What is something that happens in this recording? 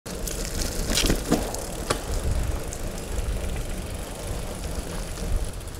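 Bicycle tyres roll and rattle over paving stones, coming closer.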